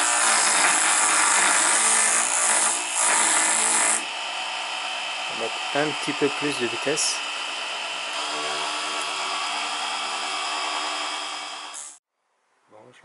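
A small lathe motor whirs steadily.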